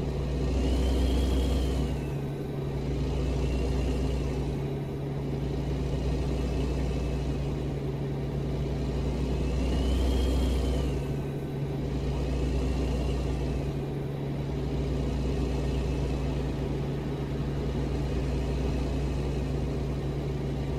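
A truck engine drones steadily with a low rumble.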